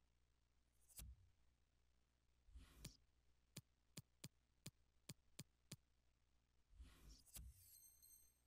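Short menu clicks tick sharply several times.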